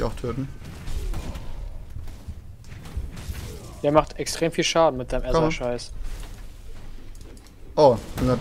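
Magic blasts crackle and thud during a fight.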